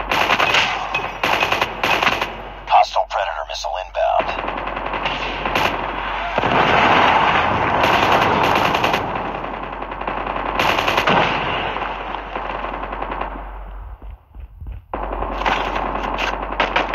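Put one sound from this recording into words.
Gunfire rattles in short, rapid bursts.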